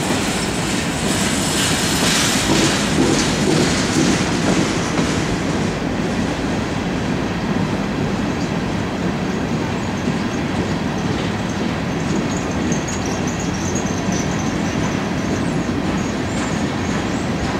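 Steel wheels clatter and squeal over the rail joints.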